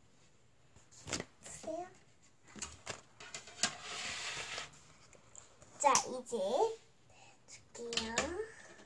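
A young girl speaks brightly and with animation close to a microphone.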